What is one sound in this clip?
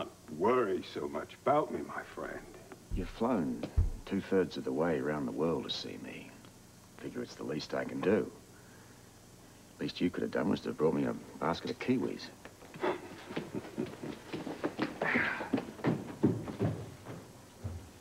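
An older man speaks calmly in a deep voice.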